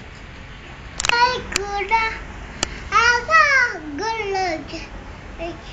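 A young boy shouts and sings excitedly close by.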